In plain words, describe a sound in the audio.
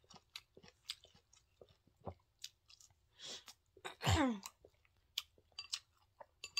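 A young woman chews food with wet, smacking sounds close to a microphone.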